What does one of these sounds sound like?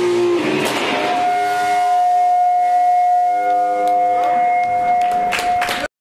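Cymbals crash.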